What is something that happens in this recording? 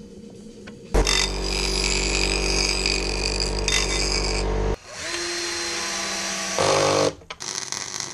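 A cordless drill whirs in bursts as it drives screws.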